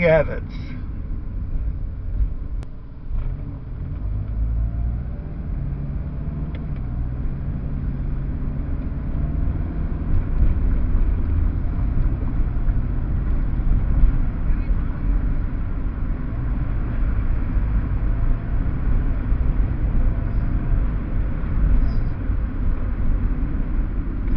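A car engine hums steadily and road noise rumbles low from inside a moving car.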